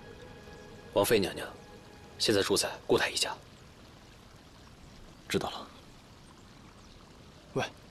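A young man speaks in short, tense phrases close by.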